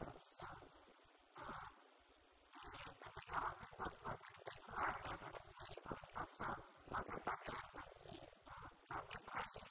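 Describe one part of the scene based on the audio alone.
A young woman speaks calmly into a microphone, heard through a loudspeaker in an echoing room.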